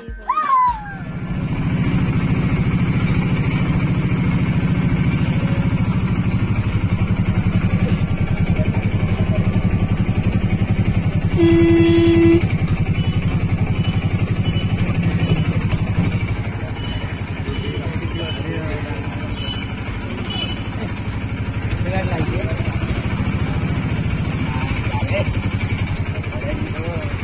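An auto-rickshaw engine rumbles and putters steadily up close.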